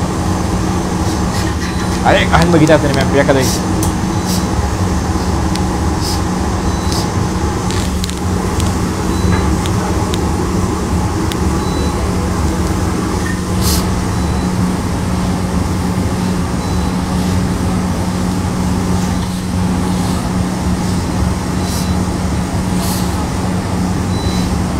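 A machine hums steadily and loudly.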